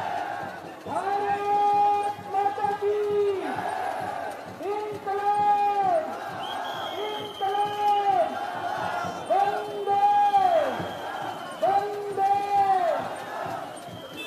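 A man chants slogans loudly through a microphone and loudspeaker.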